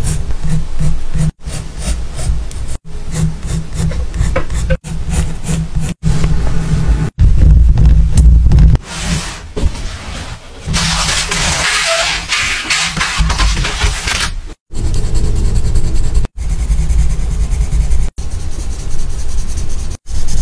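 A graphite pencil sketches on paper with soft scratching strokes.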